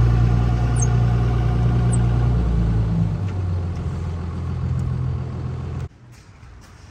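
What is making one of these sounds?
A truck engine rumbles at idle nearby.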